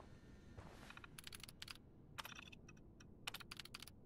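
Keys clatter as a computer terminal is typed on.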